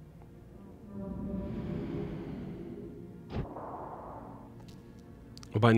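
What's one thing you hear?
A shimmering magical whoosh swells and fades.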